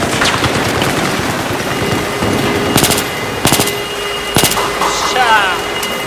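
Gunshots bang sharply in quick bursts.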